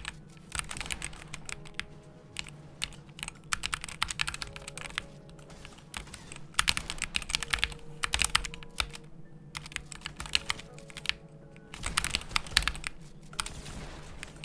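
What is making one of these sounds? Keyboard keys clatter rapidly in quick bursts, close by.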